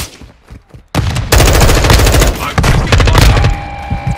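A rifle fires in rapid, loud bursts close by.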